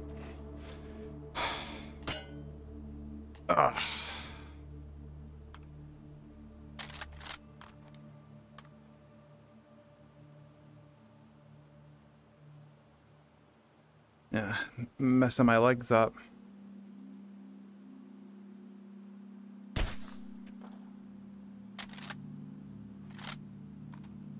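Metal clicks and clacks as a rifle is reloaded.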